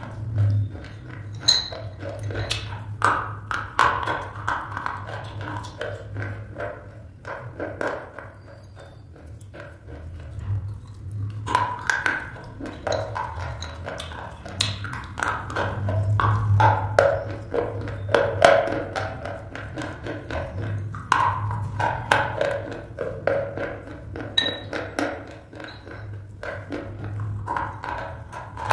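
A woman bites into and chews something crunchy up close to a microphone.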